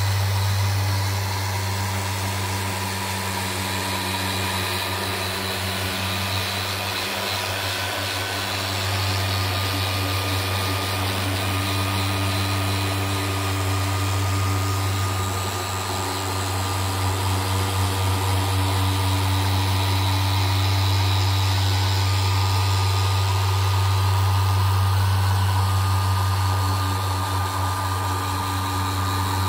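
An electric polisher hums steadily as its pad spins against a panel.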